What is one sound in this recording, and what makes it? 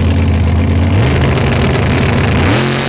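A drag racing engine roars and rises in pitch at full throttle.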